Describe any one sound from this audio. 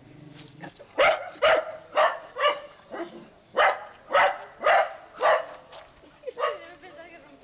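A small dog barks sharply, close by.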